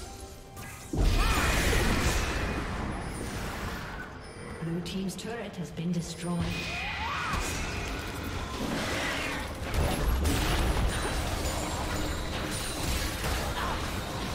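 Spell effects whoosh and crackle in a fast-paced game battle.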